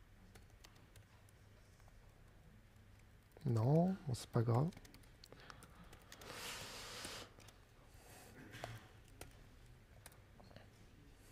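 Keys click on a laptop keyboard.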